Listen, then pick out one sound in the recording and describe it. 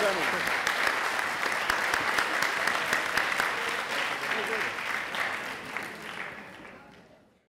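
An audience applauds in a large hall and the applause slowly fades away.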